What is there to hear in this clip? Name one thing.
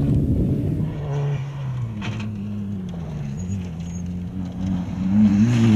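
A car engine idles and revs unevenly close by.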